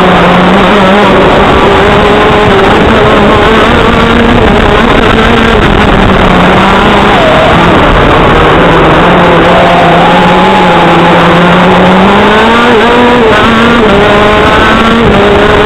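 A go-kart engine roars loudly up close, its pitch rising and falling as it speeds up and slows.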